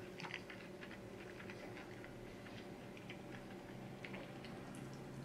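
A man chews food loudly, close to the microphone.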